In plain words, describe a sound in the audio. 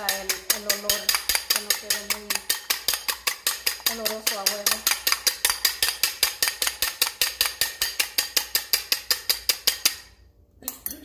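A fork beats eggs in a bowl with rapid, steady clicking.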